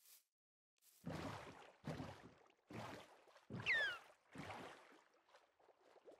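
Wooden oars splash through water in regular strokes.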